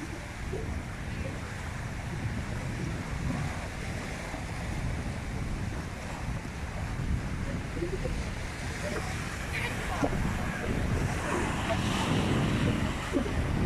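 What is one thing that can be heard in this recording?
Waves crash and churn against rocks.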